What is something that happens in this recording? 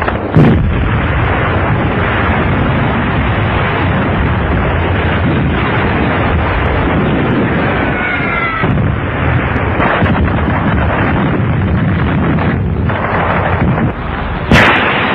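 Explosions boom and rumble across open ground.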